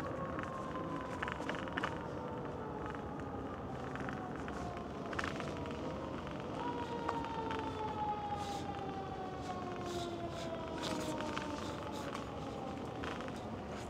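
Bicycle tyres roll over a paved path.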